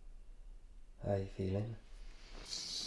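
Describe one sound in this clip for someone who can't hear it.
A young woman yawns softly nearby.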